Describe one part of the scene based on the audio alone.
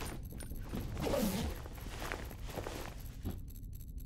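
Fabric rustles as a bandage is wrapped.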